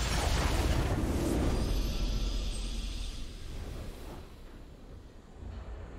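A triumphant game fanfare plays.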